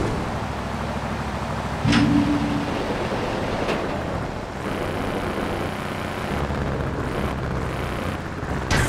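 A car engine rumbles steadily as a car drives.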